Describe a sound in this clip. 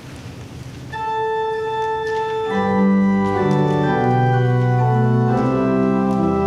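An organ plays chords.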